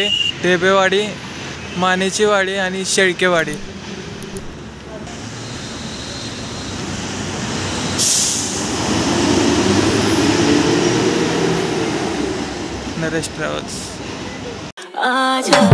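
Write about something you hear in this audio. A bus engine rumbles close by and revs louder as the bus pulls away.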